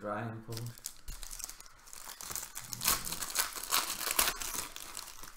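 A foil wrapper crinkles and rustles as hands tear it open.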